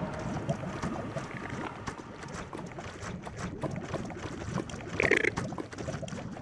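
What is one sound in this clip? Lava bubbles and pops steadily.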